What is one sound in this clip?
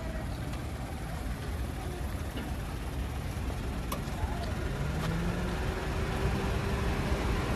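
A small car's engine hums as it rolls slowly past close by.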